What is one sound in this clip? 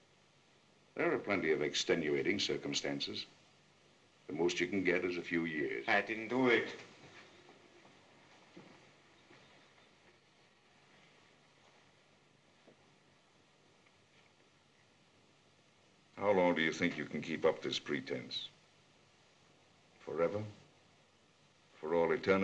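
A middle-aged man speaks in a low, serious voice, close by.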